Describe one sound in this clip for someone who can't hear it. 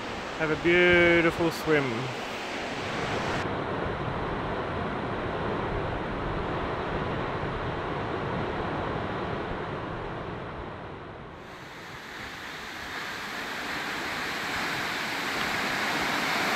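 A waterfall roars steadily, with a constant rushing of water.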